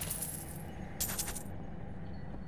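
A magic spell bursts with a bright crackling whoosh.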